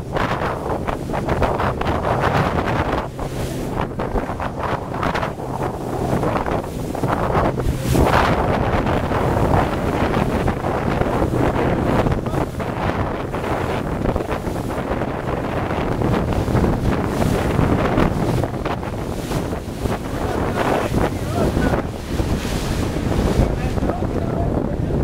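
Wind blows hard and buffets across the microphone outdoors.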